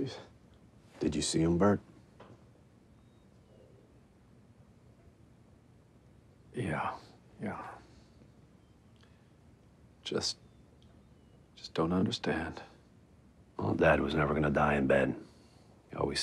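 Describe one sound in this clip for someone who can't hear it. A younger man speaks in a low, firm voice, close by.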